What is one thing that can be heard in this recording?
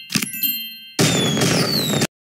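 A bright chime sounds as a challenge completes.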